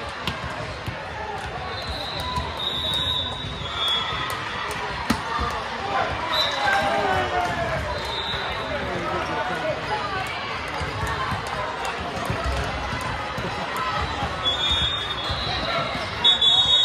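A crowd of voices chatters and calls out across a large echoing gym.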